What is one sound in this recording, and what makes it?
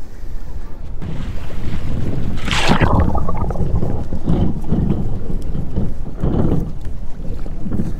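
Bubbles gurgle and rumble, heard from under the water.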